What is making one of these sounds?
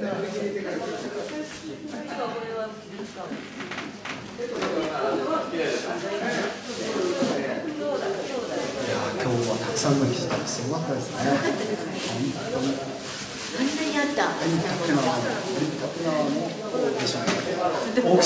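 A woman talks and laughs through a microphone over loudspeakers.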